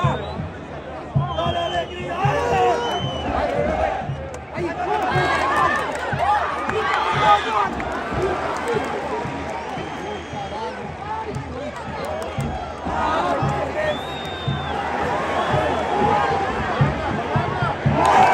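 A large stadium crowd shouts, chants and cheers throughout.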